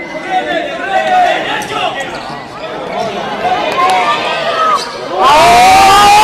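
Young men shout across an echoing hall.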